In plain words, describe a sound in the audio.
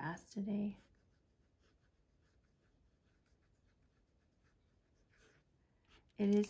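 A felt-tip pen scratches softly across paper.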